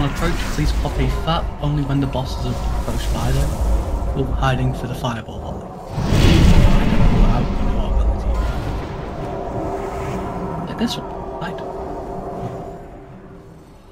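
Battle sound effects crackle, whoosh and boom in quick bursts.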